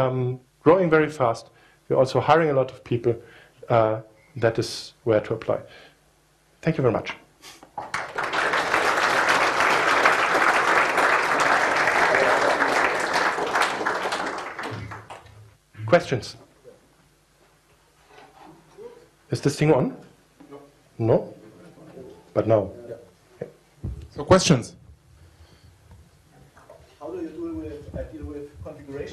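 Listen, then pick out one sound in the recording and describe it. A man speaks to an audience through a microphone in a large room.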